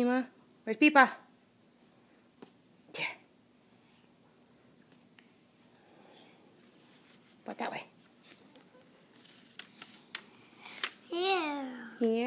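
A young girl talks in a high voice close by.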